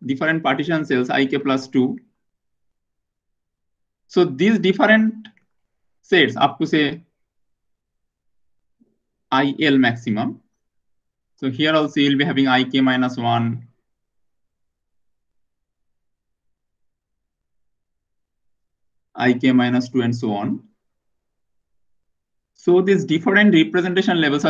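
A man lectures calmly into a close microphone, in short bursts with pauses.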